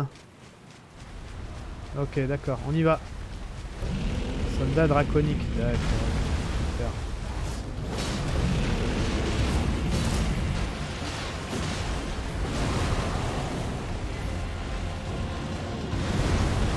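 A huge creature growls and roars.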